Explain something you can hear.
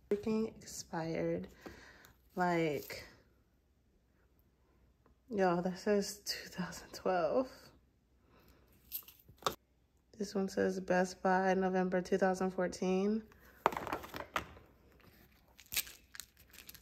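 Plastic spice jars clink and rattle as they are picked up and handled.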